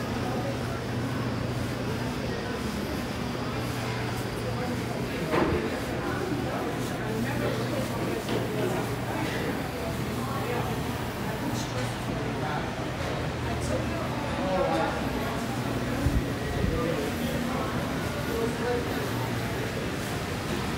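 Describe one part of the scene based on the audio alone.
Many voices murmur in a large, echoing indoor hall.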